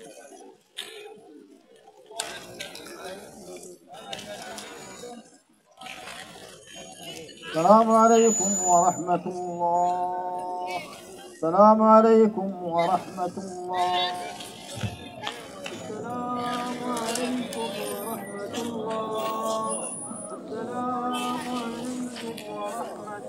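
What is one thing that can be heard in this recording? Men chat casually in a crowd outdoors.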